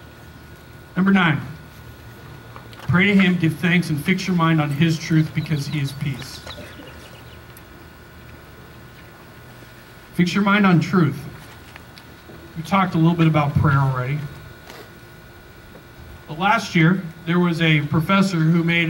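A man speaks through a microphone and loudspeaker outdoors, in slow, measured phrases with long pauses.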